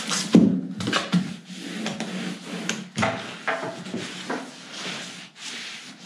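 A cloth rubs and squeaks against a hard plastic case.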